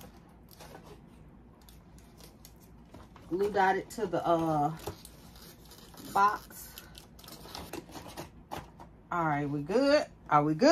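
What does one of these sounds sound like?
A paper bag rustles as it is handled.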